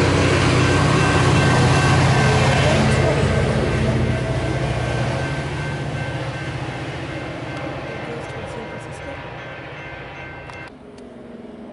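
A railway crossing bell rings.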